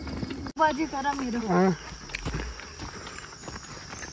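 Footsteps crunch on a stony dirt path.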